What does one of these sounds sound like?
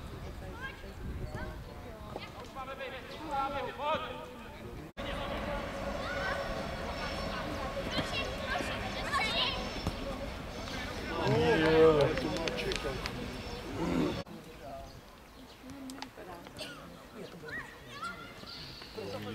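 Young players shout and call to each other across an open pitch outdoors.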